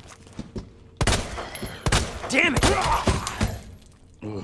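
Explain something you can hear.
Pistol shots ring out loudly, one after another.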